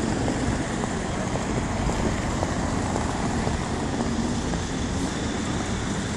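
A crowd of people murmurs outdoors.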